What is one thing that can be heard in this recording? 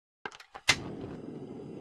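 A gas stove clicks as it is lit.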